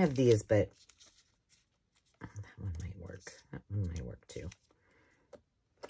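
Paper cards rustle as a hand shuffles through them.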